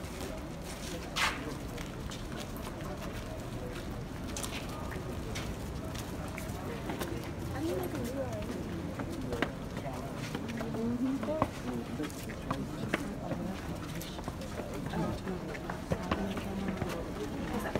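Several young women and men talk nearby.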